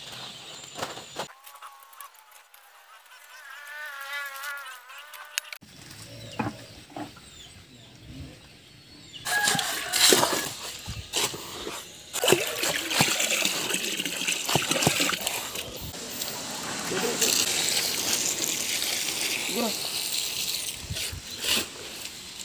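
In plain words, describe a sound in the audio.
A shovel scrapes and crunches through gravel and cement.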